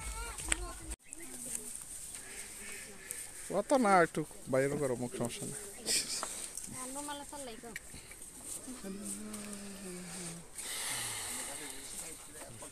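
Women talk and call out excitedly up close.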